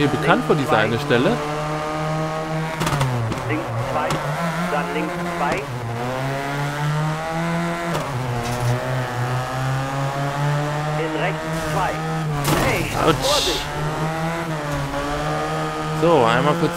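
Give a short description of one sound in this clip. A rally car engine revs hard, rising and falling in pitch.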